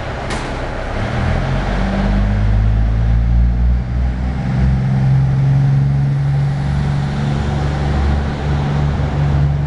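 A diesel express railcar pulls away with its engines revving hard.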